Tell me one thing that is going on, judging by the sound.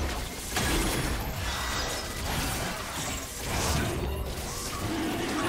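Game spells blast and crackle in a fight.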